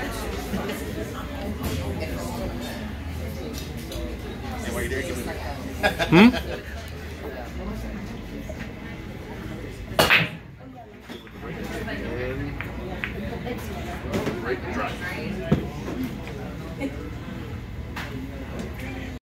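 A crowd chatters indoors.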